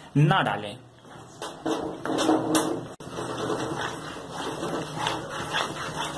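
A wooden spatula scrapes and stirs a thick paste in a pan.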